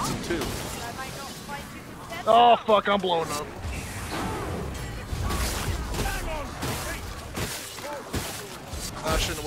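Blades slash and thud into bodies in a chaotic melee.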